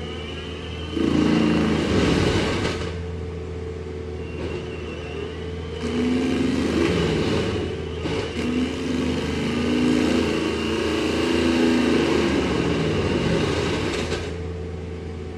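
A heavy machine's engine roars louder in bursts as it works.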